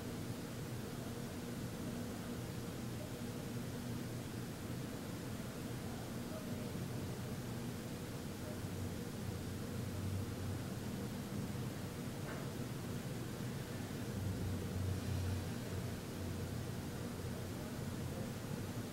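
A man hums a low, steady drone close by.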